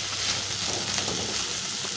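A metal ladle stirs diced vegetables in a steel wok.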